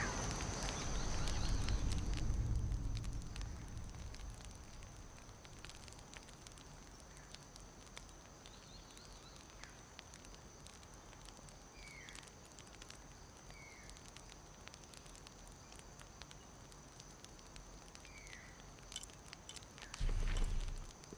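A campfire crackles and pops softly.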